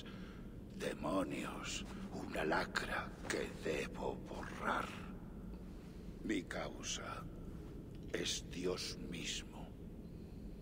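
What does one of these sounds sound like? A deep-voiced man speaks slowly and gravely.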